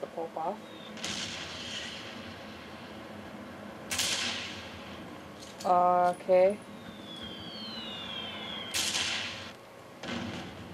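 A rifle fires loudly, each shot followed by a rolling echo.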